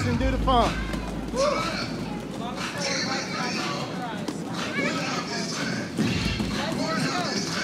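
Roller skate wheels roll and rumble on a wooden floor.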